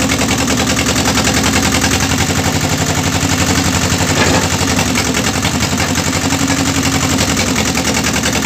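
A wood splitting machine's engine runs loudly and steadily.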